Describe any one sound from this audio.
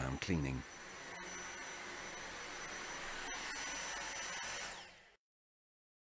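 A handheld vacuum cleaner whirs steadily.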